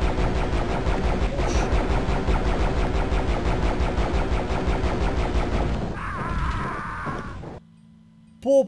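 Rapid game gunfire thuds and blasts over and over.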